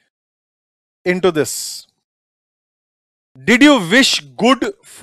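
A man speaks expressively into a close microphone.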